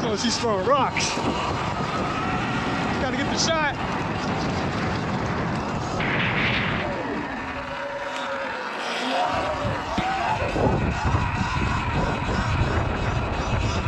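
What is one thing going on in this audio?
Wind rushes past steadily outdoors.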